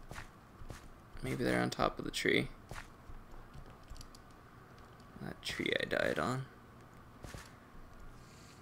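Footsteps crunch on stone and gravel.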